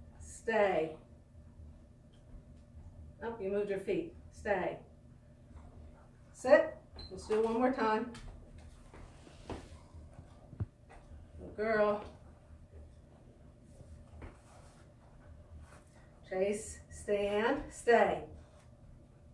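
A woman speaks calmly and warmly nearby, giving short commands.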